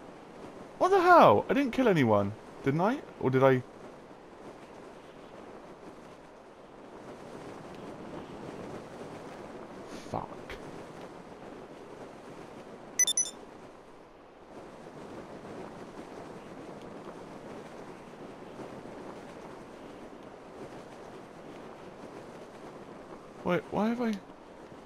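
Wind rushes steadily past a falling parachutist.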